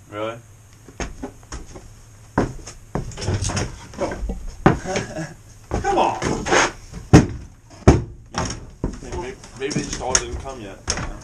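Wooden boards knock and clatter as a man climbs onto them.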